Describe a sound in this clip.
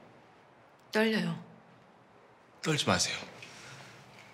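A young woman speaks sharply nearby.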